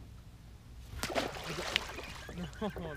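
A fish splashes into the water.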